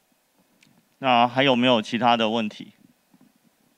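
A young man speaks calmly into a microphone over loudspeakers.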